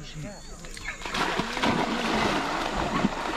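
Something splashes into water.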